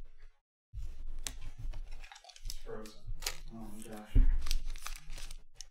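Trading cards slide and rustle in a hand.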